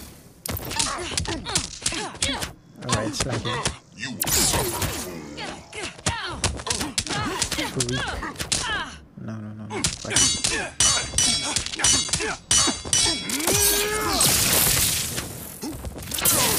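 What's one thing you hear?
Punches and kicks land with sharp, rapid thuds.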